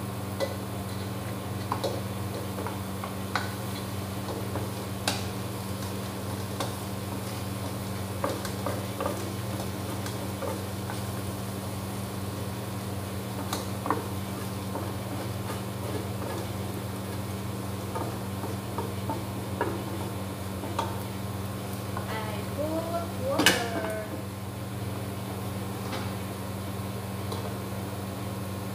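A machine motor hums steadily close by.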